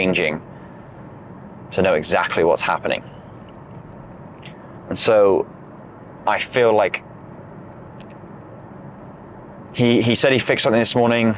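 A young man talks in short bursts close to a clip-on microphone.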